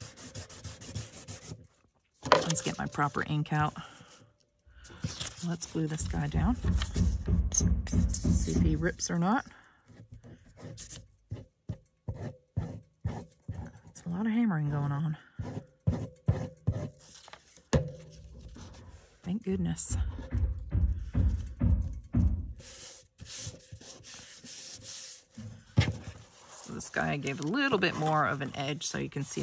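Paper rustles as hands smooth it down.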